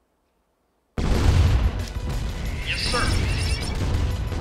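Guns fire in rapid bursts during a battle.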